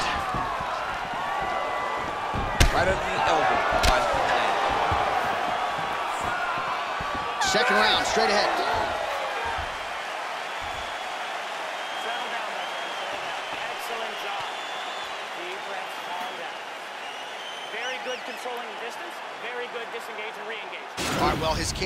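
A crowd cheers and roars throughout in a large arena.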